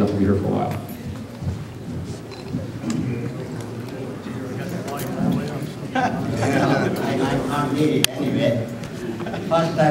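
A man speaks to an audience in a large room with some echo.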